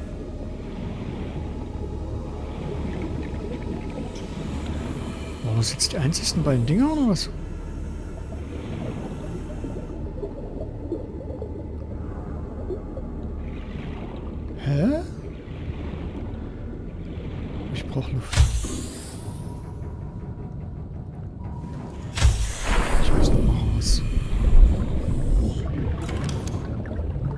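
A low underwater rumble hums steadily.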